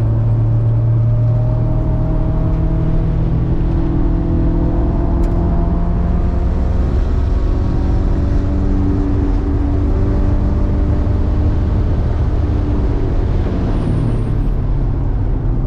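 A car engine roars loudly from inside the cabin, its pitch rising and falling as the gears change.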